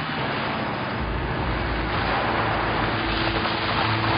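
A car engine hums as a car drives slowly closer.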